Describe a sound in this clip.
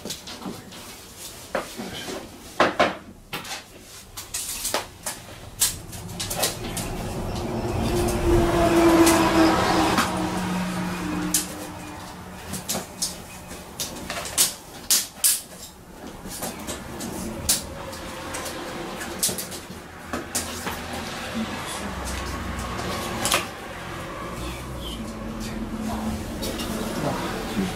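Tools click and knock against metal.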